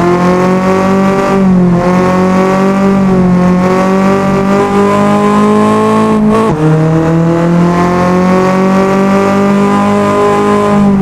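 A car engine roars steadily at high revs, dipping briefly at each gear change.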